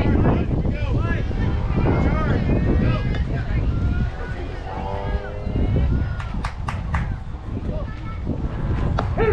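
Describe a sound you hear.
Young girls cheer and call out loudly outdoors.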